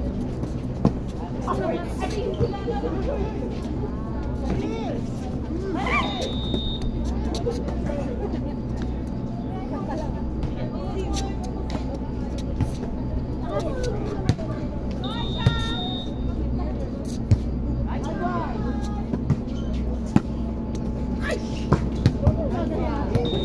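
A crowd of onlookers chatters in the background.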